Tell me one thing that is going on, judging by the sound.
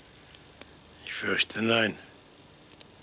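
An elderly man speaks briefly in a low, gruff voice.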